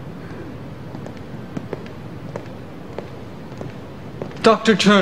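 Footsteps tap on a hard floor in an echoing hall.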